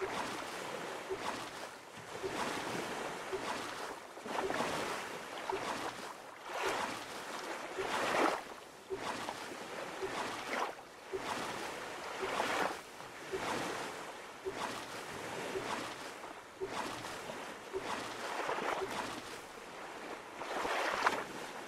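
Water laps gently against an inflatable boat.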